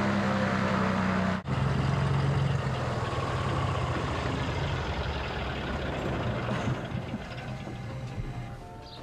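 A small propeller plane's engine drones loudly and steadily close by, slowly fading.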